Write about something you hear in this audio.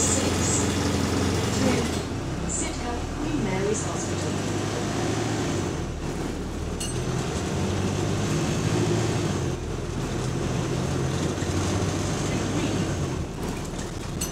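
A bus interior rattles and creaks over the road.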